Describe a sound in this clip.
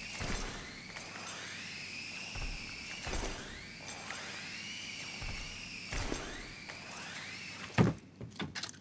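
Rappel ropes whir with a rising pitch during quick descents.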